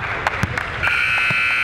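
A buzzer sounds loudly.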